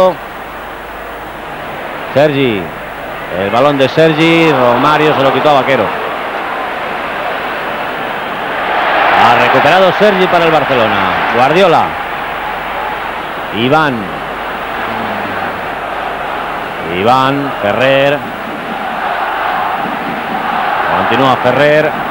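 A large stadium crowd roars and murmurs throughout.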